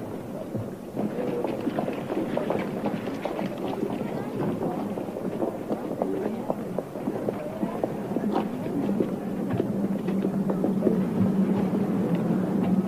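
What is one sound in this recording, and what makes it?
A large crowd chatters and calls out.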